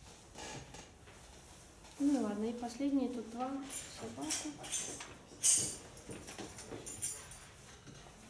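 Paper pages rustle as a woman turns them.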